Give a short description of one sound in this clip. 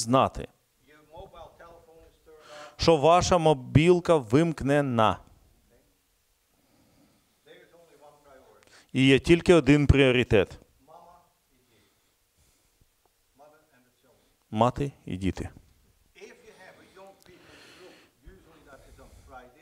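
An elderly man speaks calmly with pauses, in a room with a slight echo.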